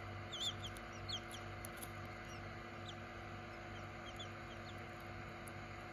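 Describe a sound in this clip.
A newly hatched chick peeps in short high chirps, close by.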